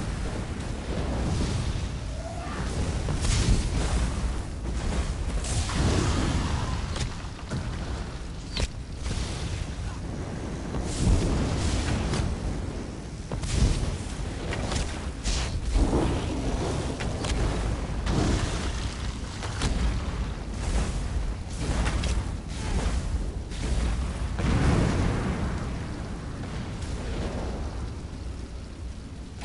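Magic spells crackle and burst in quick blasts.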